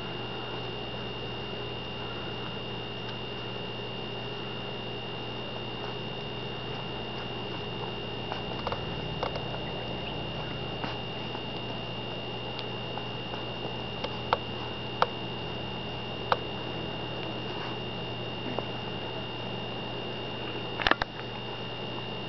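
Newborn puppies suckle with soft smacking sounds.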